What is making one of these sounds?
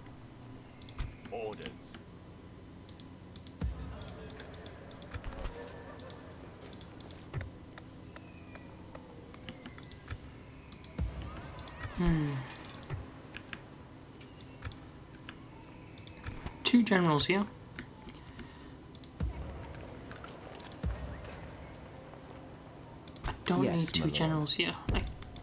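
Short game interface clicks sound now and then.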